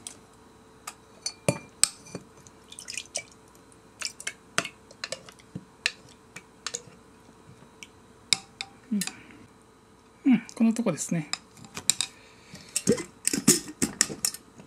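A spoon clinks against a glass as it stirs.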